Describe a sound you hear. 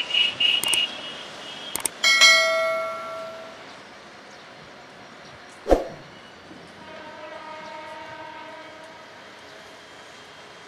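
A train horn blares several times from a distance.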